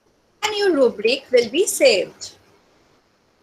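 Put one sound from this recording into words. A young woman speaks briefly and calmly through an online call.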